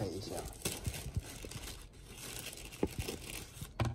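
Scissors snip through plastic wrap.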